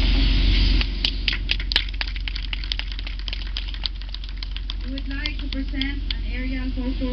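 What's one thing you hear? A group of people claps their hands.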